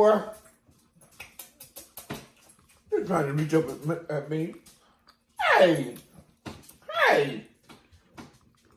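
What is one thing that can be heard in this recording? A middle-aged woman chews and smacks her lips close by.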